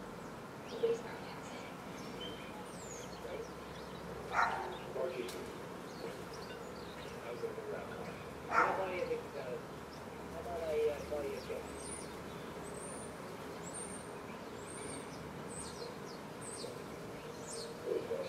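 Doves coo softly close by.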